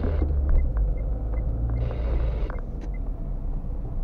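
A tram rumbles past close by.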